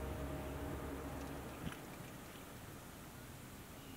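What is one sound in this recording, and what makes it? A fizzy drink pours over ice into a glass.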